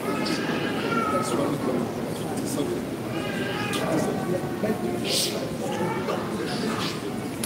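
A crowd murmurs and calls out in the background.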